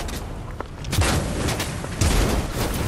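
An explosion bursts with a loud blast.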